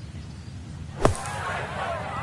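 A golf club thumps into sand.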